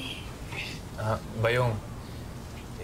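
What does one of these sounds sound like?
A man speaks in a low voice up close.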